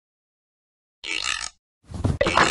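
A cupboard door swings open.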